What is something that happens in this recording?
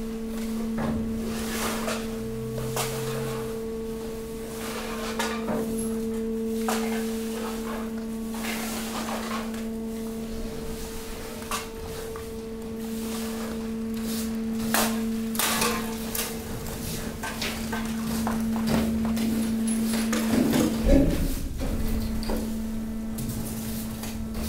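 Rubbish scrapes, rustles and knocks as a moving floor pushes it along.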